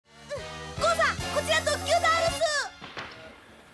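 A young boy shouts excitedly.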